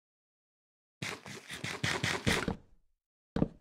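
Food is chewed with quick crunchy bites.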